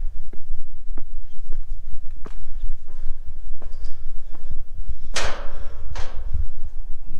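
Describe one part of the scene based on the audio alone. Footsteps clank on metal stair treads.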